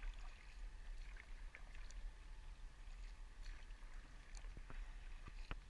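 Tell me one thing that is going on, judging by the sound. A paddle splashes and drips in calm water.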